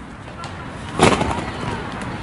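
Feet thump onto a trampoline outdoors.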